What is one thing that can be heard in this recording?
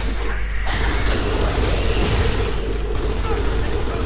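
A machine gun fires rapid bursts of shots.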